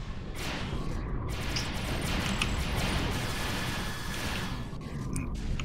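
Energy blasts crackle and hiss in a game fight.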